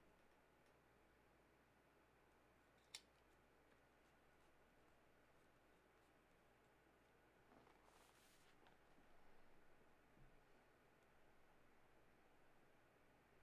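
A plastic card case clicks and rustles as hands handle it.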